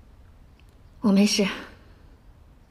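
A young woman answers quietly and briefly.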